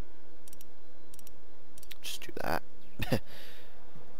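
Metal dials on a safe click as they turn.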